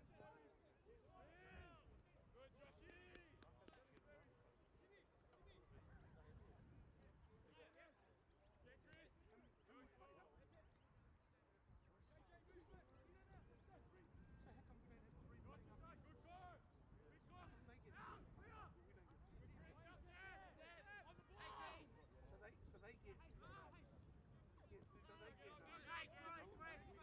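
Wind blows over the microphone outdoors.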